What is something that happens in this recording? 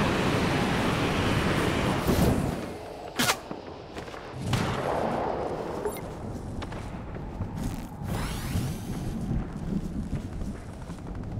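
Air rushes loudly past while gliding through the air.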